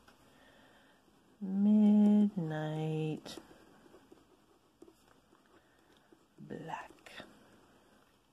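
A pen scratches softly across a paper card.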